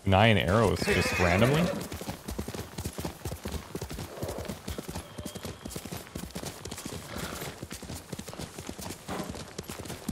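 Horse hooves pound fast and steadily on soft ground.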